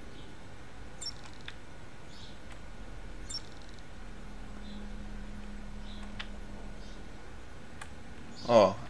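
Soft electronic beeps and clicks sound now and then.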